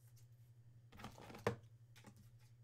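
A plastic card sleeve crinkles as a card slides into it.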